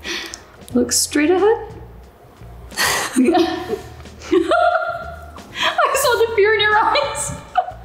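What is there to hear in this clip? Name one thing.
A woman speaks with animation close by.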